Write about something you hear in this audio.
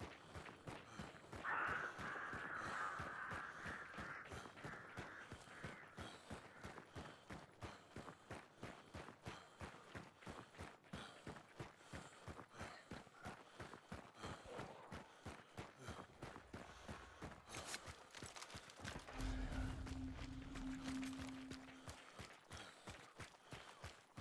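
Footsteps crunch quickly on a dirt road.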